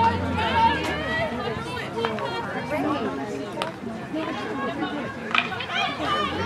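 A hockey stick strikes a ball with a sharp clack.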